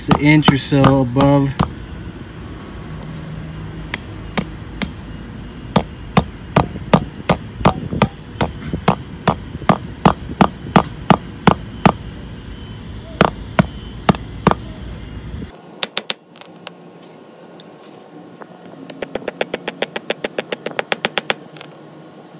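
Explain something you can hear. A hammer strikes metal bolts in sharp, ringing blows.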